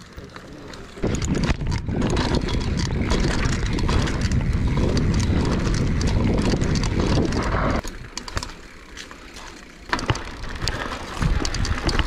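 Bicycle tyres rattle over a bumpy dirt trail.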